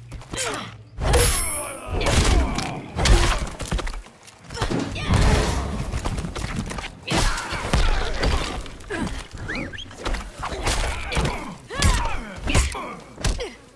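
Punches and kicks thud in a video game fight.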